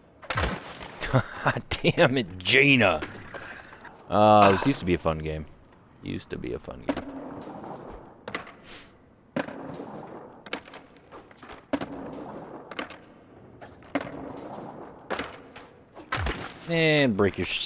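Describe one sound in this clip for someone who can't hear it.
Skateboard wheels roll and grind on rails and ramps.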